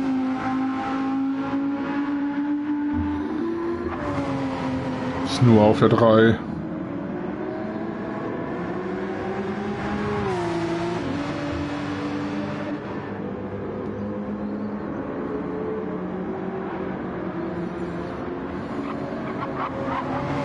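A racing car engine roars and revs up and down through the gears.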